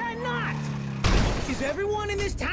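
A motorcycle crashes with a loud thud.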